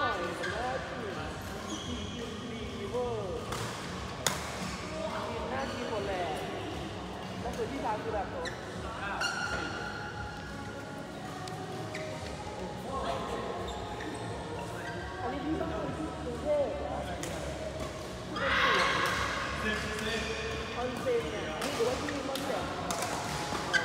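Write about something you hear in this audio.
Men call out to each other during play in a large echoing hall.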